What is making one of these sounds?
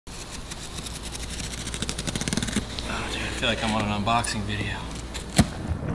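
Packing tape rips off a cardboard box.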